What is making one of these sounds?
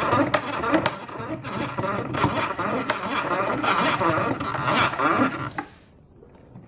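A gramophone crank ratchets and clicks as it is wound by hand.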